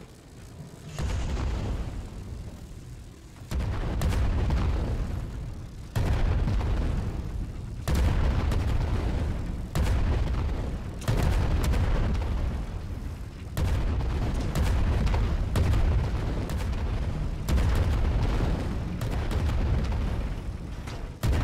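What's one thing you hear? A cannon fires booming shots again and again.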